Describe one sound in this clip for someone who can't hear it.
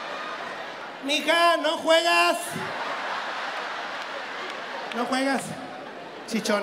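A crowd murmurs and cheers in the background.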